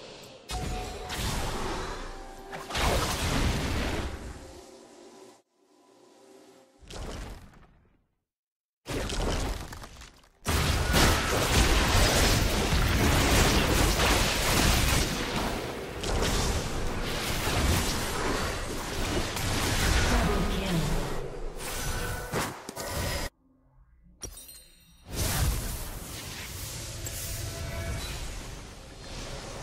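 Magical blasts and clashing effects crackle in a fast fight.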